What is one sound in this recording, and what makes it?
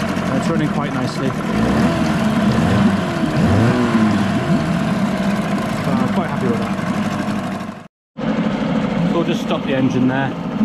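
A small outboard engine runs loudly with a rattling buzz.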